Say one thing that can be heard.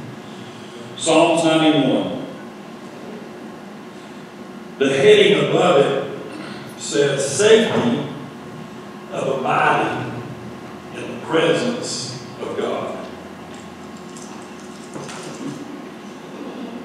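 A man speaks slowly and calmly through a microphone in a large echoing hall.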